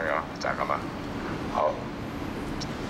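A middle-aged man speaks through a microphone and loudspeaker outdoors.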